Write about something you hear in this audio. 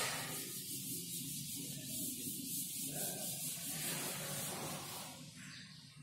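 A duster rubs and scrapes across a chalkboard.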